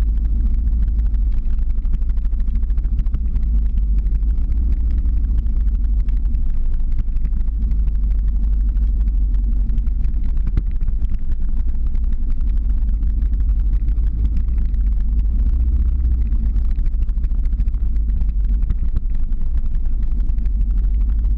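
Small hard wheels roll and rumble on rough asphalt.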